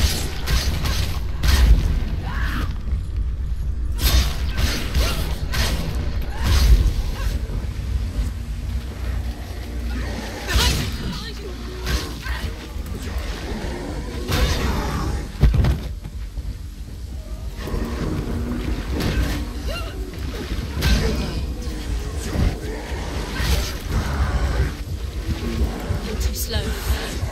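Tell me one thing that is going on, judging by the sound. Deep rumbling booms and thuds.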